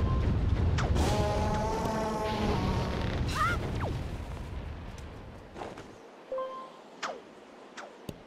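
A grappling hook whips through the air and catches.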